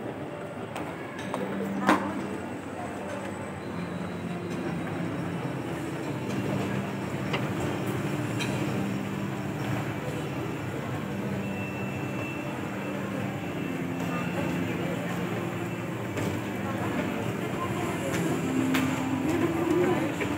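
An escalator hums steadily as it runs.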